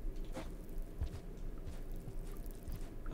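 Footsteps thud softly on stone.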